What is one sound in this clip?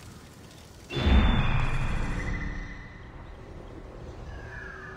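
A rushing whoosh sweeps past as the view swoops down through the air.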